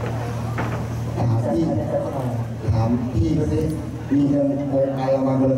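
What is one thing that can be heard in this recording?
A young man sings into a microphone, heard through loudspeakers.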